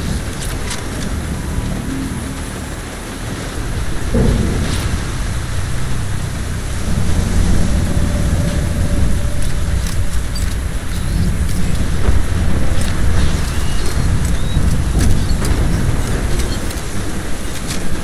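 Strong wind howls outdoors.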